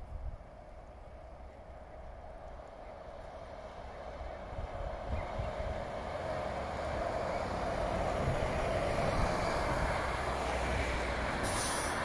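A bus engine approaches, grows louder and passes close by.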